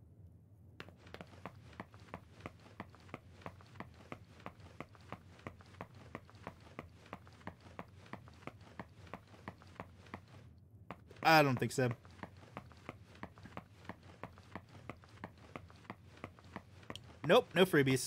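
Quick footsteps patter steadily on a hard floor.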